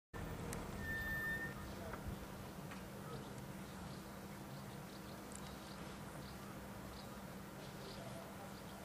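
Wind rushes steadily outdoors.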